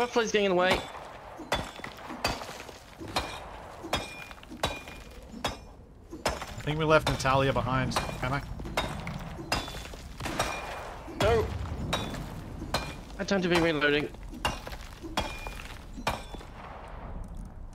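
A pickaxe strikes rock again and again at a steady pace.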